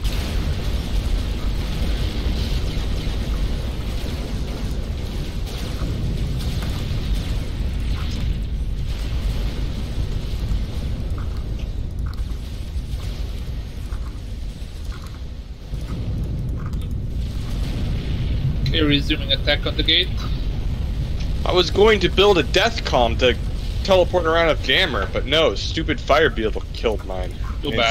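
Distant explosions rumble and boom in a low, steady roar.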